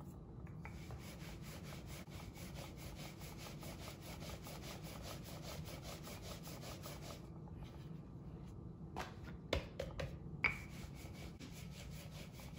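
A rolling pin rolls back and forth over dough on a wooden board.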